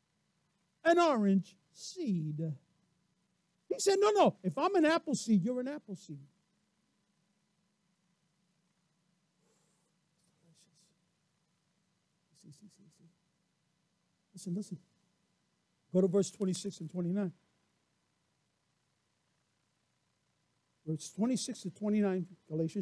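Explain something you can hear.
A man speaks with animation through a microphone, with long pauses.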